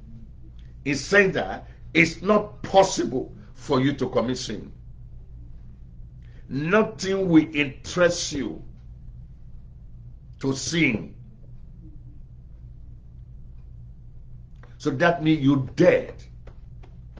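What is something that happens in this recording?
A middle-aged man speaks with animation, close to a microphone, in bursts with pauses.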